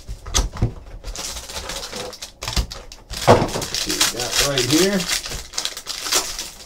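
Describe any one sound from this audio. Foil wrappers rustle and crinkle in hands.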